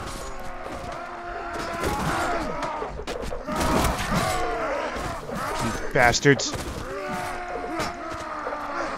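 Swords clash and clang in a close fight.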